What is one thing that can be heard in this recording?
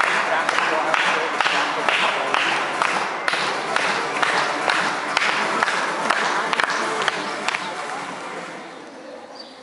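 An audience claps and cheers in a large echoing hall.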